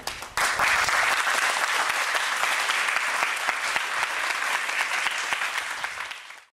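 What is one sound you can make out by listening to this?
A large crowd of young people applauds in an echoing hall.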